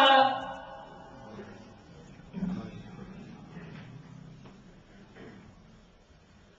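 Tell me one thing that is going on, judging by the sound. A man chants into a microphone and his voice echoes and fades in a large hall.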